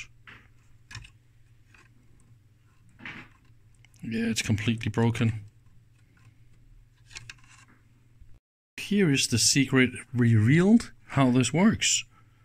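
A screwdriver tip scrapes and clicks against a plastic clip.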